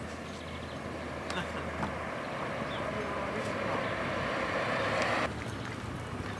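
A loader's diesel engine rumbles steadily nearby.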